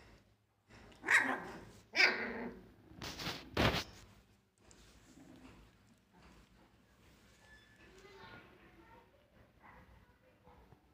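Puppies squeal and yelp close by.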